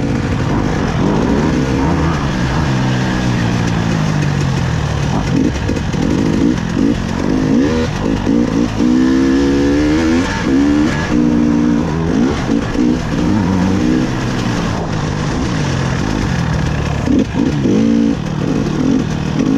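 A dirt bike engine revs up and down loudly throughout.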